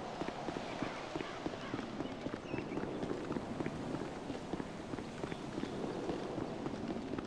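Footsteps run quickly on an asphalt road.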